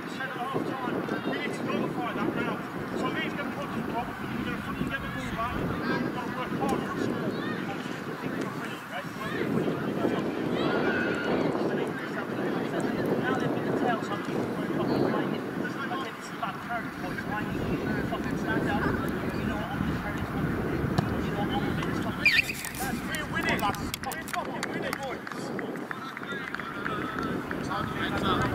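Young men talk and shout together outdoors, heard from a distance.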